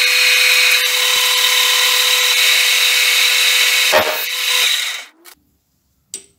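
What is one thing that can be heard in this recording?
A metal lathe whirs loudly as its tool cuts into metal.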